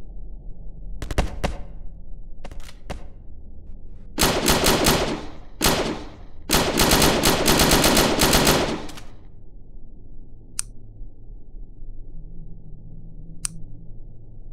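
Guns fire in rapid bursts of loud shots.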